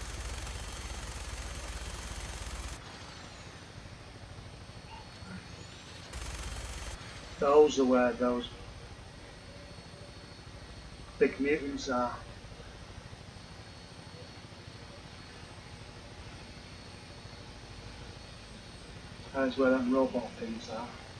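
A helicopter's rotor drones steadily.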